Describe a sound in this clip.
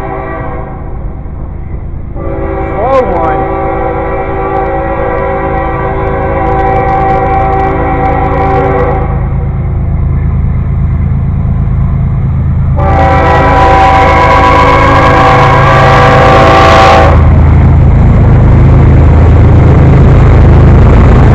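A diesel locomotive rumbles as it approaches.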